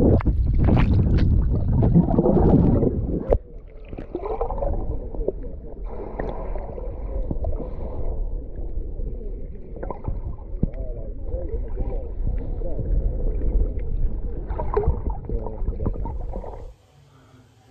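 Muffled underwater rumbling and gurgling fills the sound, close by.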